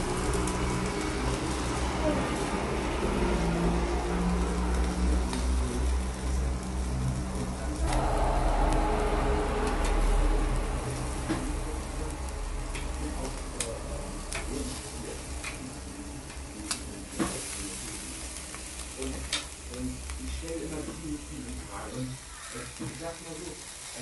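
Meat sizzles steadily on a hot grill.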